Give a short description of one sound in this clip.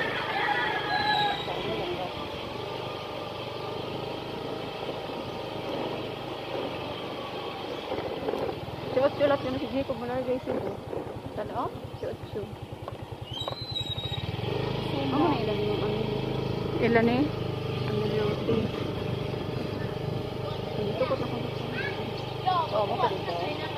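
A motorbike engine hums steadily while riding along.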